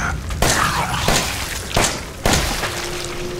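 Gunshots ring out loudly.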